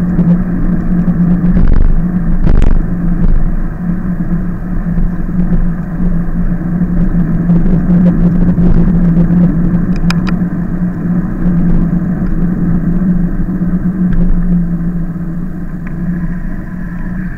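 Bicycle tyres roll and hum on asphalt.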